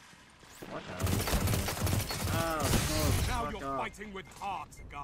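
Rapid gunshots ring out in quick bursts.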